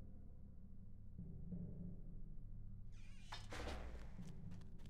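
A heavy iron gate rattles open.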